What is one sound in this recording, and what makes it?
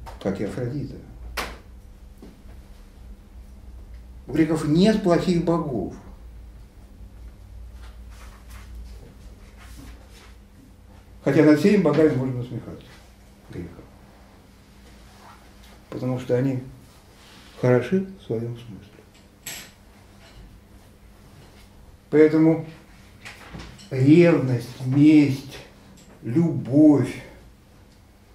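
An elderly man speaks with animation in short bursts, with pauses between.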